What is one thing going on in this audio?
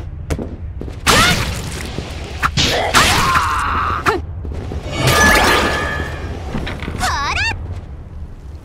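Game sword slashes and magic effects whoosh and clang in quick bursts.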